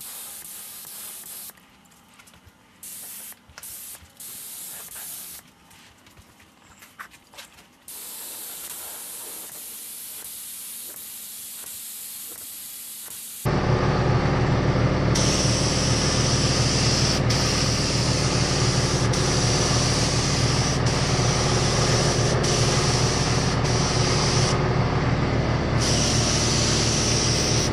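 A paint spray gun hisses in bursts.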